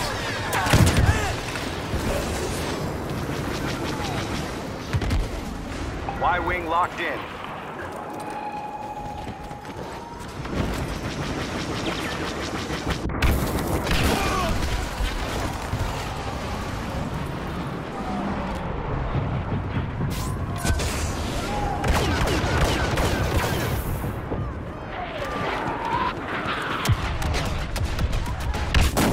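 Gunfire crackles steadily all around.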